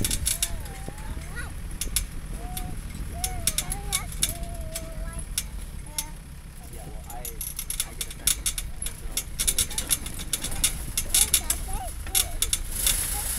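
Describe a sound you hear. Tyres crunch and rattle over a bumpy dirt road.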